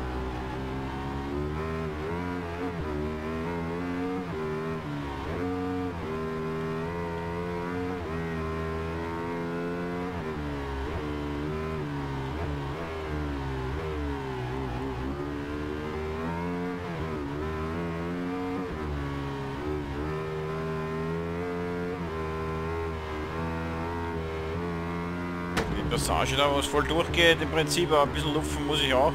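A motorcycle engine revs high, rising and dropping in pitch as it shifts through gears.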